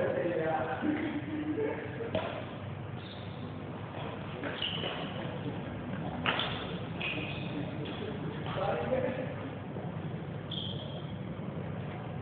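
Badminton rackets hit shuttlecocks with sharp pops.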